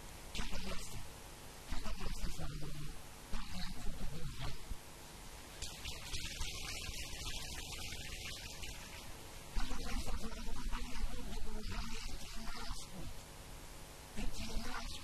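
An elderly man speaks with animation through a microphone and loudspeakers, in short bursts with pauses.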